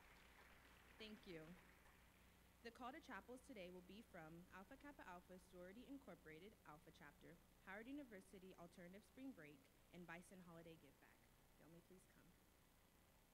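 A young woman speaks calmly through a microphone in a large echoing hall.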